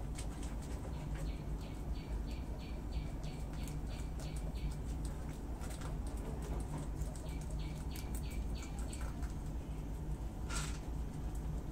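Guinea pigs and a rabbit crunch and chew fresh leaves up close.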